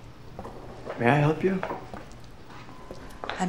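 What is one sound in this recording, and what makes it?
A young man speaks urgently nearby.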